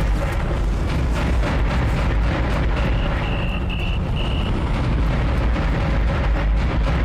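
A deep engine rumble drones steadily.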